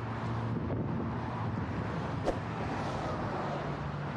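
A heavy body drags and thumps onto a truck bed.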